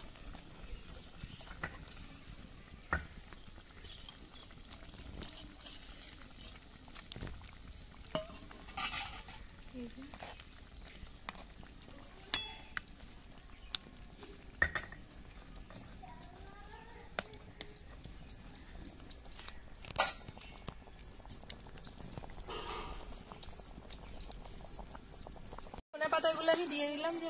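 A curry bubbles and simmers in a pot.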